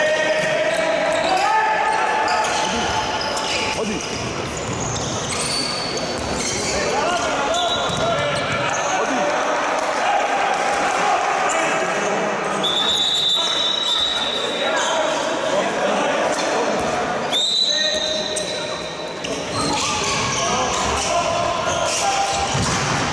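A handball bounces on a wooden court.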